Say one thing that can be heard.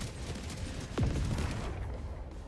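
Sparks burst with crackling explosions.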